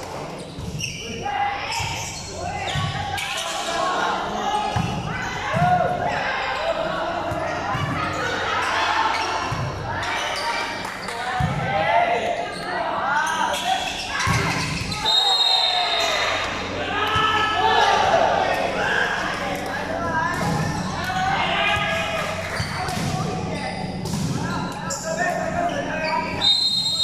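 A crowd of young people shouts and cheers in a large echoing hall.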